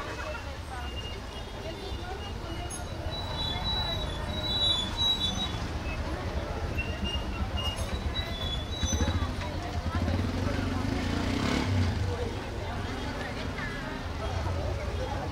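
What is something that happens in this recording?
A crowd of young men and women chats outdoors.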